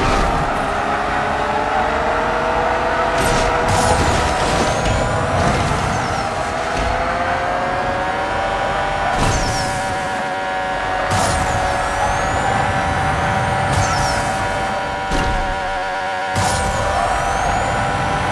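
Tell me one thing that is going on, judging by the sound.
A racing car engine roars at high revs throughout.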